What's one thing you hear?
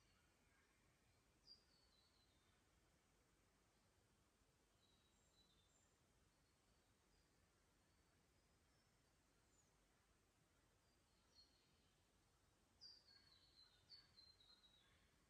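Water trickles softly among stones.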